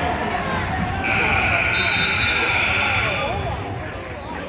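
A referee blows a long whistle.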